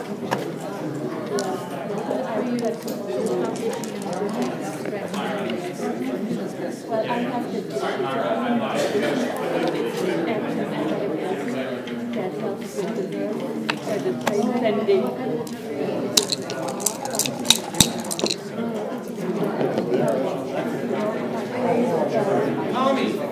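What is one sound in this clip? Plastic checkers click against a wooden board.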